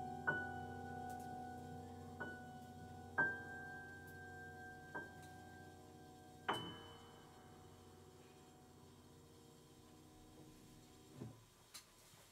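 A grand piano plays slow, ringing chords that fade away.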